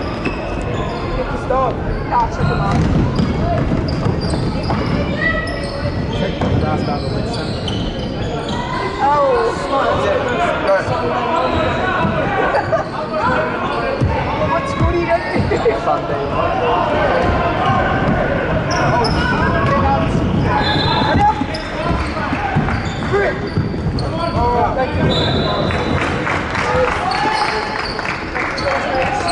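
A crowd of people chatter and call out in a large echoing gym.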